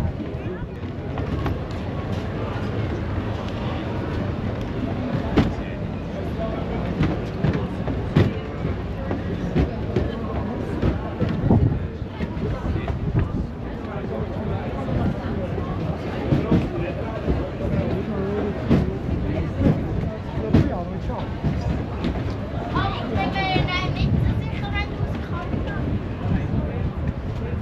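Footsteps thump on wooden planks and steps.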